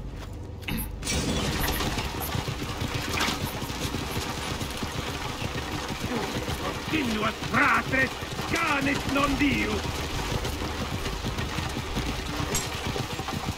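Chariot wheels rumble over stone.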